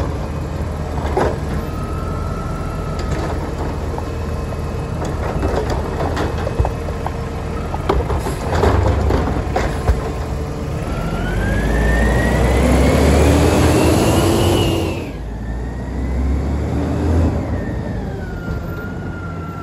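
A garbage truck engine idles and rumbles nearby.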